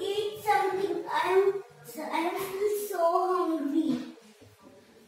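A young child sings loudly nearby.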